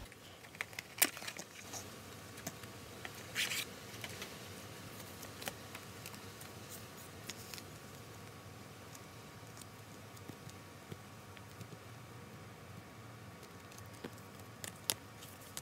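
A card taps and clicks against plastic.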